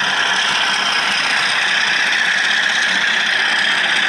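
A model train locomotive hums and rattles along the track.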